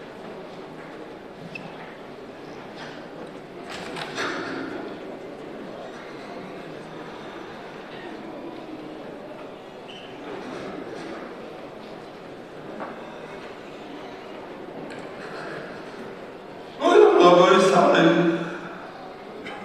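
An elderly man chants through a microphone in a large echoing hall.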